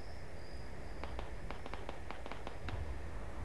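Footsteps tread softly on a paved road.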